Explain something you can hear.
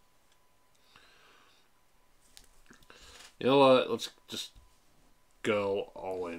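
Playing cards slide and tap softly on a table.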